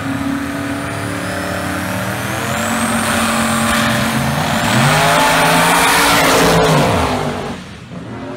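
Race car engines roar loudly and rev up as the cars launch away.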